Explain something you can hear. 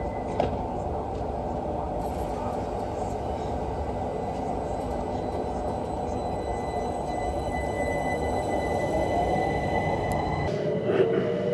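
A standing train hums steadily.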